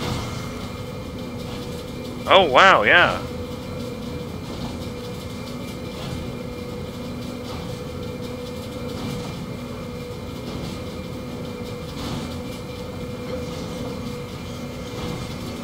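Large metal gears turn with a low mechanical hum.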